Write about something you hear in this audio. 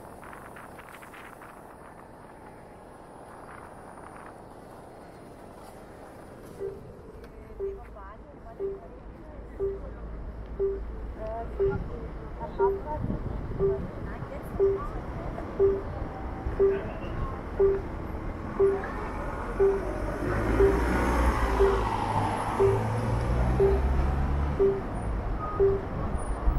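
City traffic hums steadily in the background.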